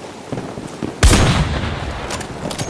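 A rifle fires a loud, sharp shot that rings out.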